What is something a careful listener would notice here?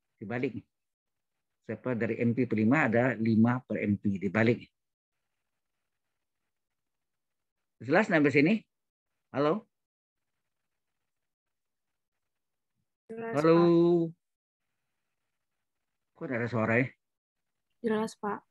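A man speaks calmly in short bursts over an online call, heard through a microphone.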